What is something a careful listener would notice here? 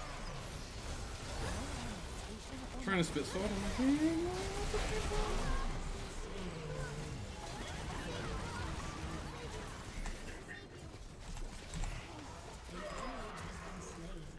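Video game spell effects whoosh and clash during a fight.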